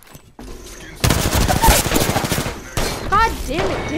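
An electric weapon crackles and zaps.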